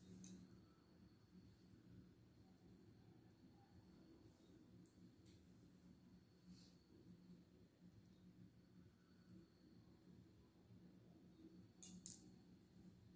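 Glass bangles clink softly on a woman's wrist.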